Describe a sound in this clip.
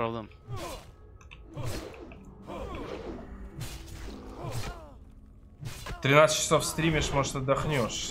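A burst of magical fire roars up.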